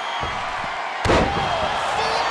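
A body slams down onto a wrestling mat with a heavy thud.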